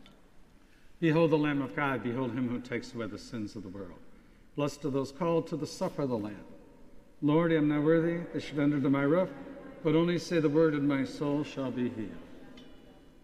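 An elderly man speaks slowly and solemnly through a microphone in an echoing hall.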